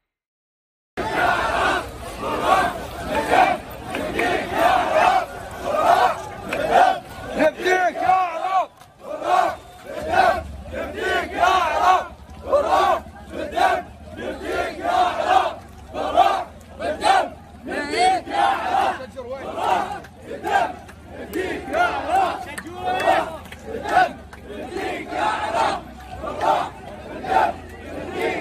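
Men shout and cheer close by.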